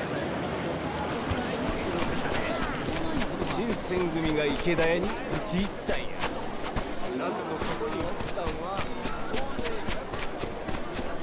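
Footsteps run on a dirt street.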